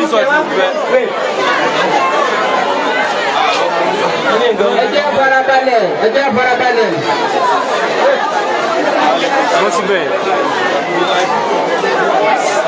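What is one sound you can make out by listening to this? A large crowd of men and women chatters loudly close by.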